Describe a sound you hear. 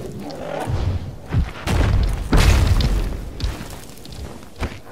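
A large creature lands with heavy thuds.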